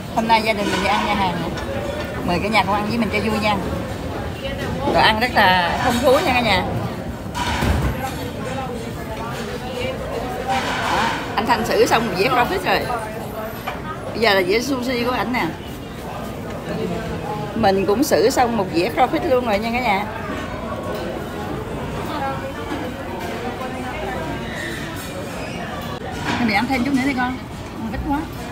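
A middle-aged woman talks with animation close to the microphone.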